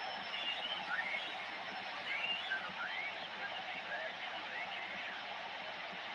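Warbling, rising whistles chirp from a radio receiver.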